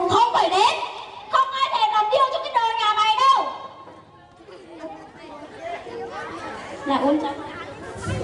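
A young girl sings through a microphone and loudspeaker.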